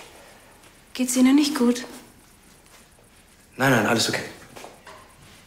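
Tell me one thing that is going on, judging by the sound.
A woman speaks in a calm voice.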